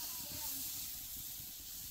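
Batter pours from a metal bowl onto a hot iron griddle.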